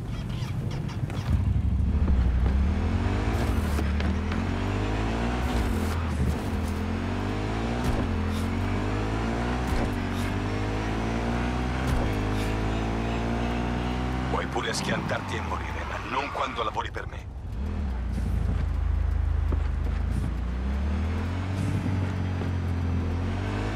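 A motorcycle engine revs up and down through gear changes.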